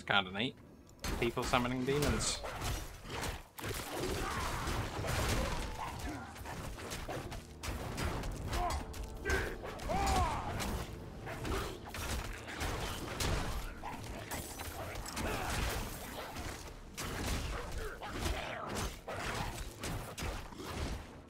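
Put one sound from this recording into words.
Game combat effects clash and crackle.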